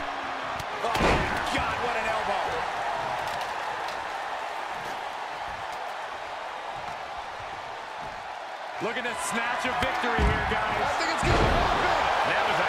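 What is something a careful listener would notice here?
Heavy bodies slam down onto a wrestling ring with loud thuds.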